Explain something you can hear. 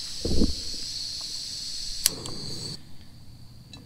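A gas camping stove hisses steadily.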